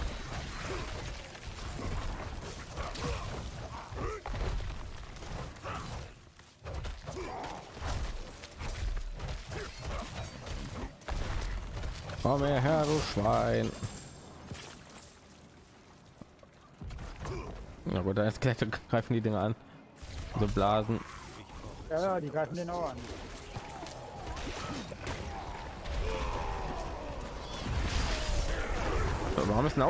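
Magic spells crackle and blast amid a fight with monsters.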